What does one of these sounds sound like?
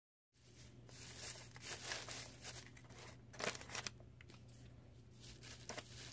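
Plastic bottles and packages rustle and clatter as a hand moves them in a plastic basket.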